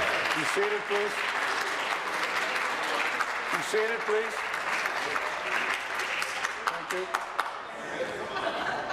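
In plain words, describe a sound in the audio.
A crowd of men and women murmurs and chatters in a large echoing hall.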